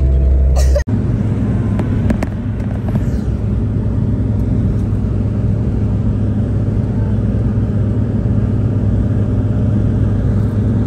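A vehicle's engine and tyres rumble steadily on a road, heard from inside.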